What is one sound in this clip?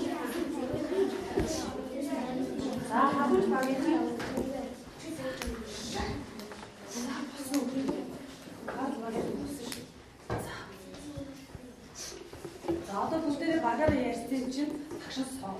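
A woman speaks with animation to a group, close by.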